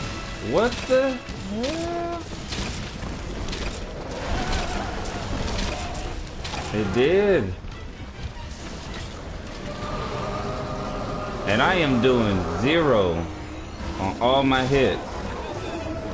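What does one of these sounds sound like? A large monster roars and screeches loudly.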